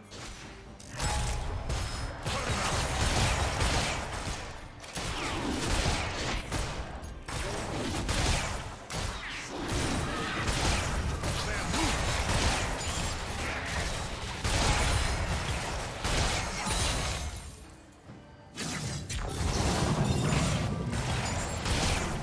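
Video game spell and weapon effects clash and crackle during a fight.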